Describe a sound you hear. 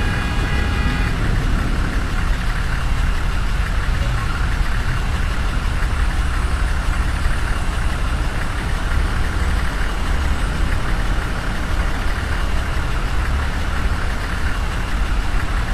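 A bus engine rumbles steadily while driving slowly.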